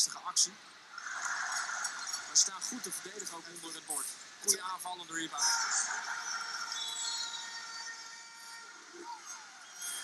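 A large crowd cheers and claps in an echoing arena.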